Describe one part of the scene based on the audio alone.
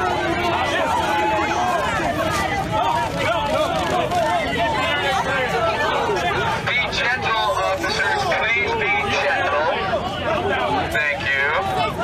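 A dense crowd of men and women shouts and chants loudly outdoors.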